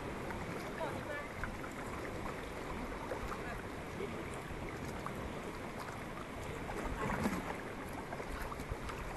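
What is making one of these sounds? Water laps against a kayak's hull.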